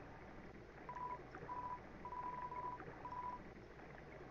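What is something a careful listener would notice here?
Short electronic blips sound in quick succession as text types out.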